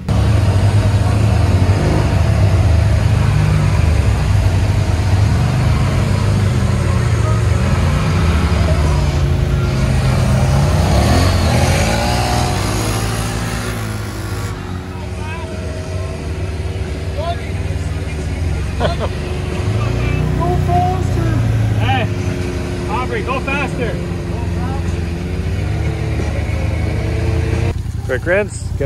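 An off-road vehicle's engine roars and revs up close.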